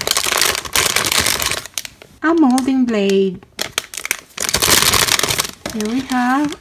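Plastic wrapping crinkles loudly.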